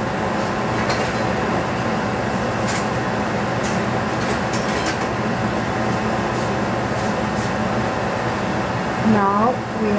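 Mushrooms sizzle and crackle in a hot frying pan.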